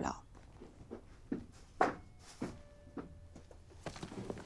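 Footsteps fall on a tiled floor.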